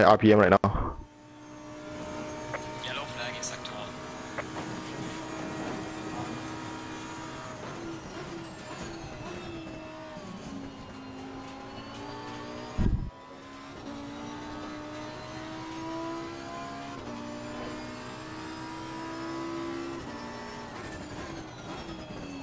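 A race car engine roars and whines, rising and falling in pitch as it shifts gears.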